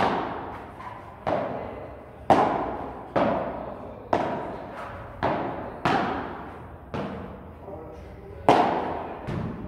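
Paddles strike a ball back and forth with sharp pops that echo in a large hall.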